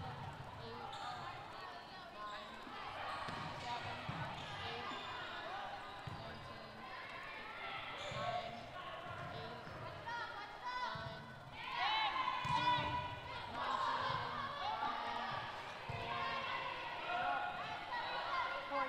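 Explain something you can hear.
Young women players call out to each other across an echoing gym.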